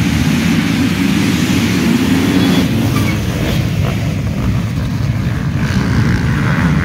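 Many motorcycle engines roar loudly as the bikes race off together.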